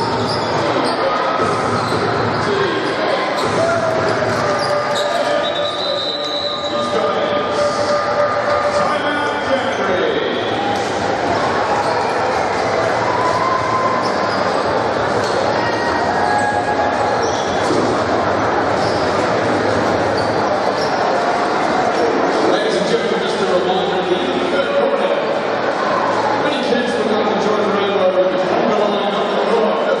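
A large crowd cheers and chatters in an echoing hall.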